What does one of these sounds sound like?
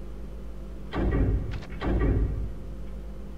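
Short electronic menu chimes sound twice in quick succession.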